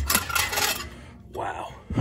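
A gloved hand brushes and wipes a metal surface.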